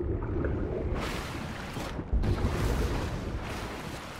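Water splashes as a character wades through the shallows.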